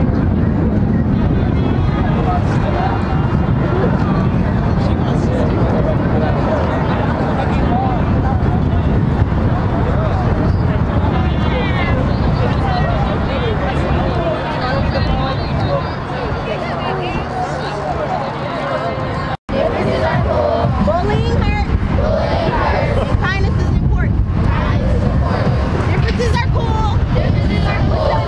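Wind rumbles across the microphone.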